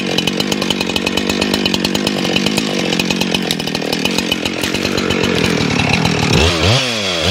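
A chainsaw idles with a rapid putter close by.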